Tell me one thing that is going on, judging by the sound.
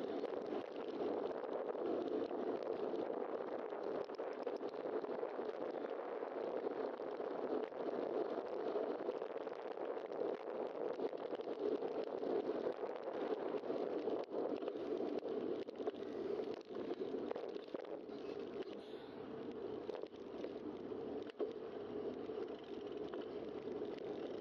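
Wind rushes steadily past a microphone on a moving bicycle.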